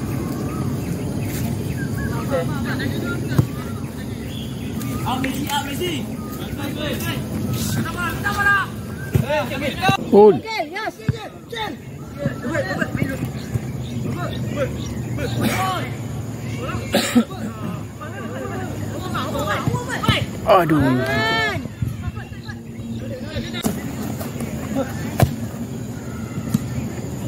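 Players shout to one another across an open field outdoors.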